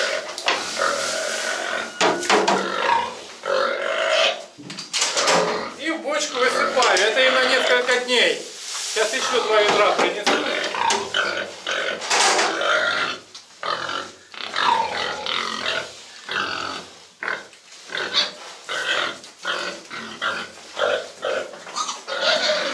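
Pigs squeal loudly and excitedly close by.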